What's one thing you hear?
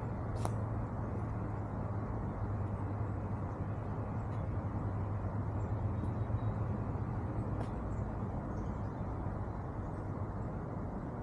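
Footsteps crunch softly on dry leaves.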